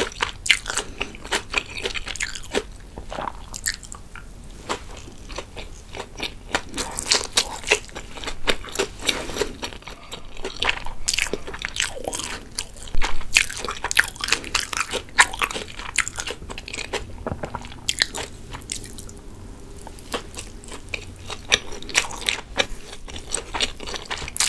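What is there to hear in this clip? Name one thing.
A young woman chews and slurps food wetly, close to a microphone.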